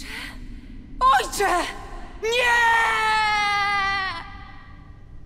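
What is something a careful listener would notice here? A young woman cries out in a shrill, wavering voice.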